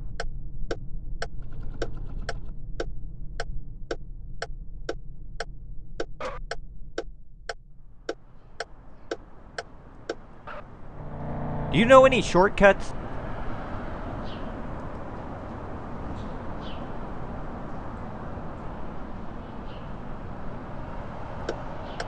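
A car engine hums steadily.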